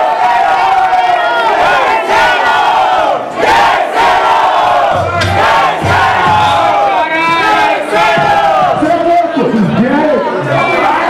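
A crowd cheers and shouts in an echoing room.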